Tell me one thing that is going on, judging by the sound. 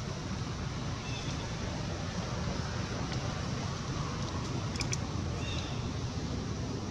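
A baby monkey squeaks briefly.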